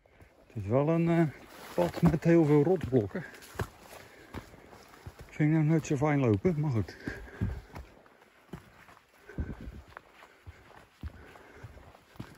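Footsteps crunch on a stony dirt path.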